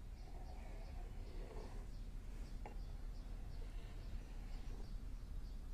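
A knife scrapes and taps on a wooden board.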